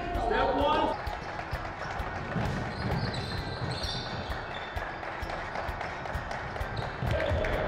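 Sneakers squeak on a hard court in a large echoing gym.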